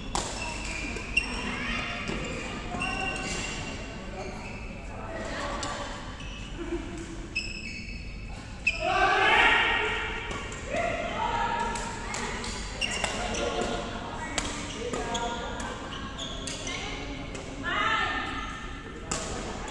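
Young women call out and chatter nearby.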